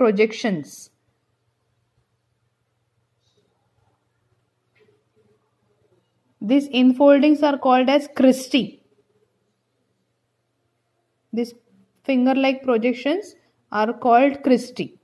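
A woman speaks calmly and clearly, close by, in short phrases with pauses.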